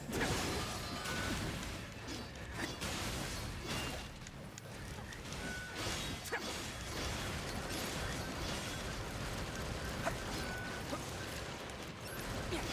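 A young woman talks into a close microphone with animation.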